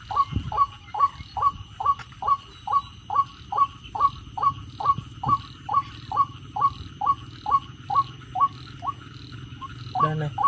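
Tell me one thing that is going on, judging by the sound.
A small electric device gives off quick, regular chirping beeps.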